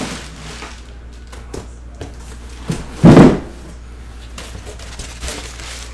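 Cardboard scrapes and rustles as a box is handled.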